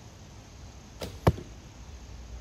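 A bowstring snaps sharply as an arrow is released.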